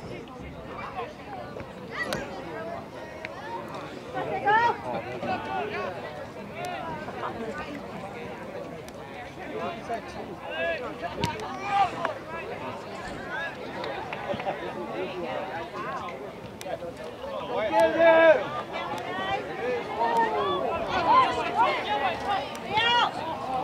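A crowd of men and women shouts and cheers outdoors from a distance.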